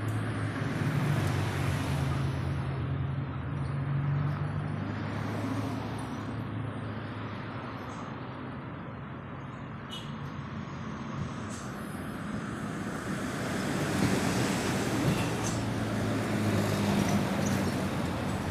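Vehicles drive past on a nearby road, their engines rising and fading.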